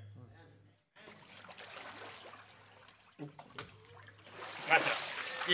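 Water splashes as a person is lowered into it and lifted out.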